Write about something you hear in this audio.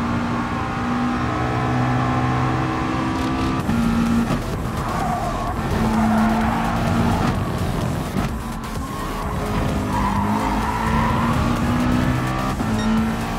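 A racing car engine roars at high revs, shifting gears up and down.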